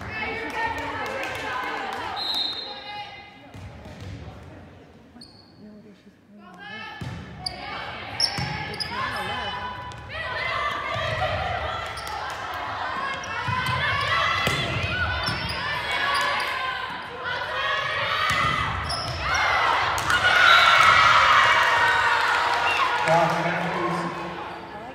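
Young women players call out and shout on the court.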